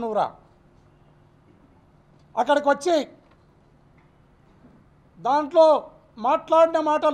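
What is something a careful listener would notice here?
A man speaks forcefully into microphones in short bursts with pauses.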